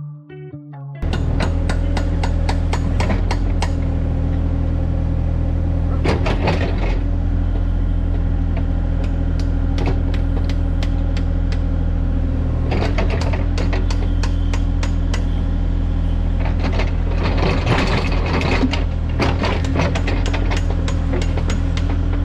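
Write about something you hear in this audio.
A digger's diesel engine runs steadily close by.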